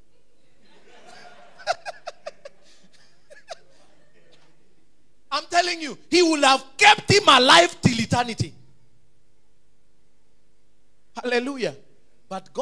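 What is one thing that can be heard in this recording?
A man preaches loudly and with animation through a microphone.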